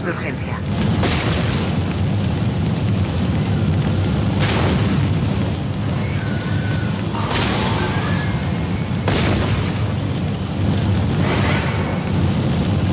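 An energy gun fires in sharp, loud bursts.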